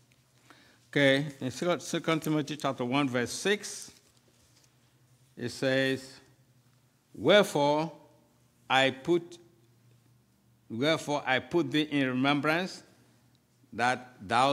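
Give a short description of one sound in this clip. An elderly man speaks slowly and solemnly into a microphone in a room with a slight echo.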